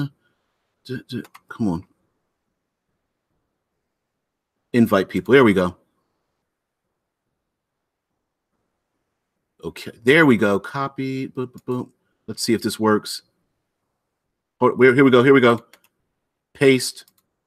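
A middle-aged man speaks calmly in short bursts into a microphone, heard as if over an online call.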